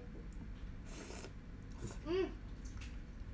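A young woman slurps noodles up close.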